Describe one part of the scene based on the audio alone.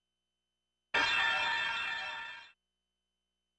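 A bright electronic chime rings out and fades.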